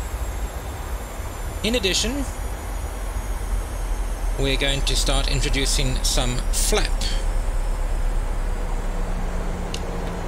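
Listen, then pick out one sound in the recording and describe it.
A steady low rumble of jet engines and rushing air drones on.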